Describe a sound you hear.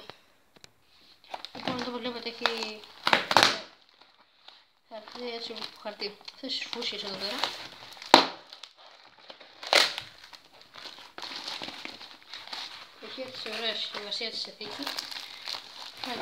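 Plastic bubble wrap crinkles and rustles under fingers.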